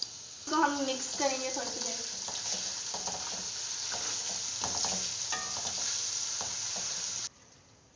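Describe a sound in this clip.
A spatula scrapes and stirs inside a metal wok.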